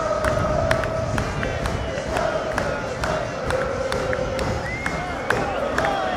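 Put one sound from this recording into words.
Young men shout and cheer together nearby.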